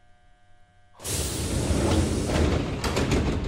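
Train doors slide open with a loud rush of air.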